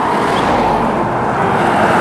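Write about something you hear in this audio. A car drives along a road in the distance.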